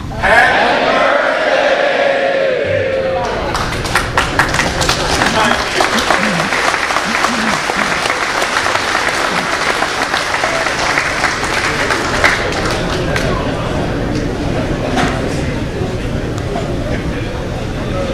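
A crowd murmurs and chatters.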